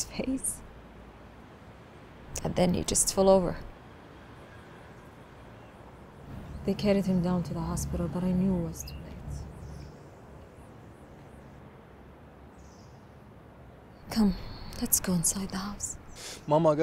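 A young woman speaks in a troubled voice close by.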